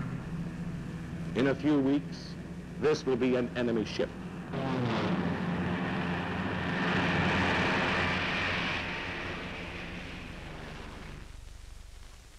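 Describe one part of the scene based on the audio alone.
A propeller plane's engines drone loudly as it flies past overhead, then fade.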